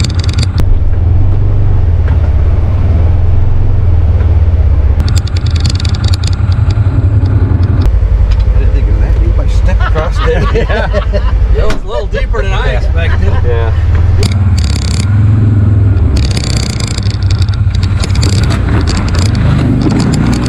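An off-road vehicle engine rumbles steadily up close.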